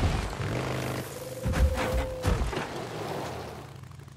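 A motorcycle skids and slides in the dirt.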